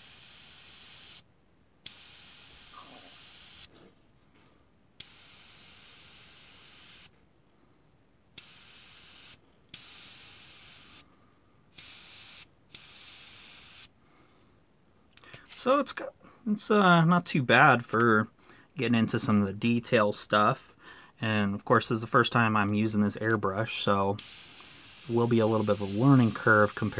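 An airbrush hisses in short bursts of spray.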